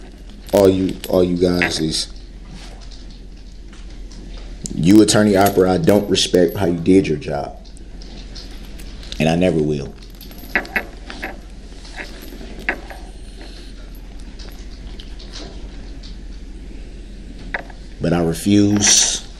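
A man speaks in short, intense bursts with long pauses between them.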